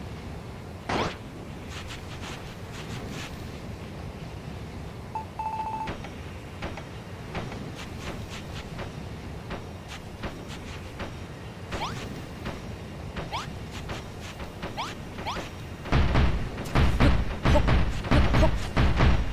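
Blocks thud and clatter as a game character builds.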